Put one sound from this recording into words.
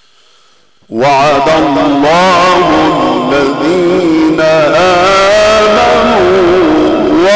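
A man chants a long melodic recitation through a microphone, loud and echoing.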